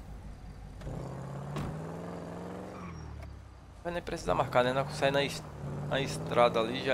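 A car engine revs as the car pulls away.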